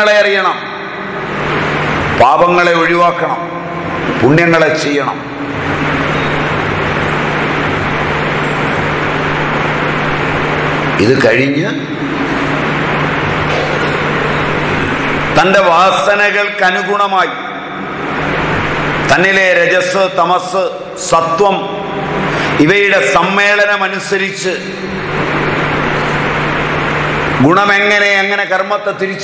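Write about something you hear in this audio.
A middle-aged man speaks nearby with animation.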